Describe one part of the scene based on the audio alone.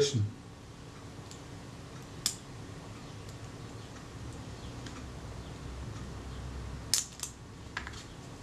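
A thin wooden stick scrapes and taps lightly against a small metal part.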